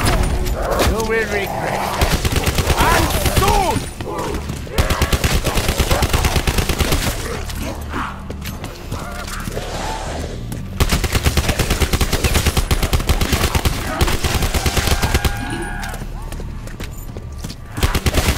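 A monster snarls and groans nearby.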